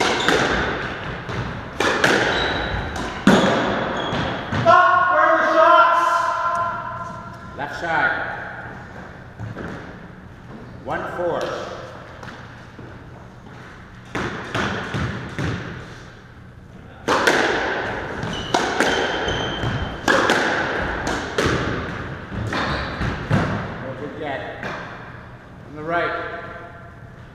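A squash ball smacks hard against the walls, echoing around the court.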